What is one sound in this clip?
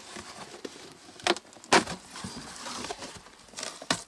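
A cardboard box rustles and crinkles in someone's hands.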